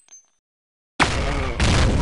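A sniper rifle fires a single loud, sharp shot.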